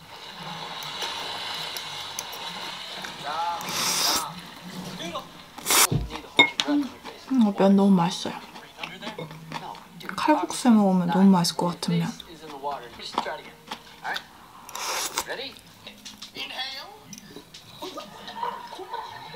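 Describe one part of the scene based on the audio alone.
Metal cutlery clinks and scrapes against a ceramic bowl.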